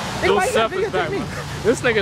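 A second young man speaks loudly close by.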